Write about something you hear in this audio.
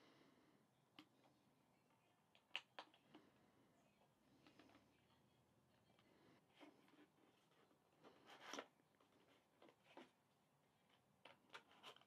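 A cardboard box rustles and scrapes as hands handle it.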